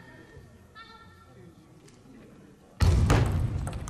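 A table tennis ball clicks back and forth between paddles and table in an echoing hall.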